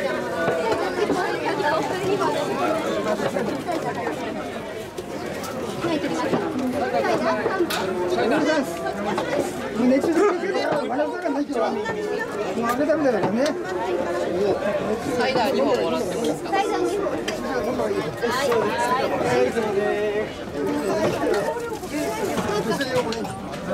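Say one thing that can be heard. A dense crowd of men and women chatter and call out close by, outdoors.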